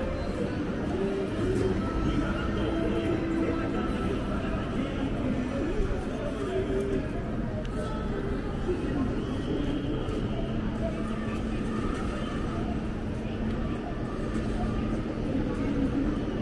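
Footsteps of many people shuffle on paving.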